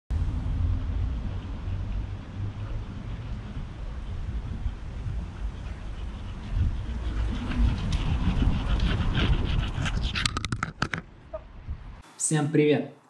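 Wind rumbles across a microphone outdoors.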